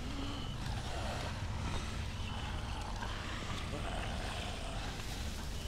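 Zombies shuffle slowly on pavement.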